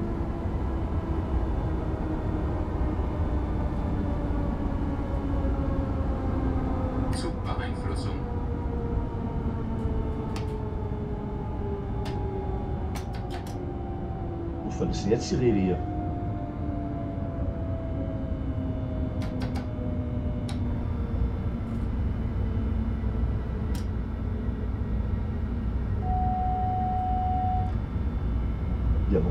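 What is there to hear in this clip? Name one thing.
Train wheels rumble and clatter over the rails.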